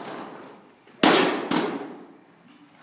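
A wooden seesaw bangs down onto the ground.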